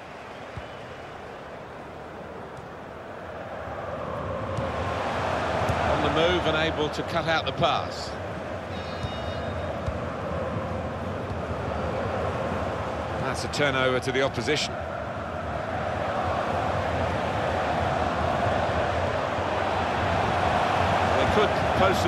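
A stadium crowd roars steadily, swelling louder at times.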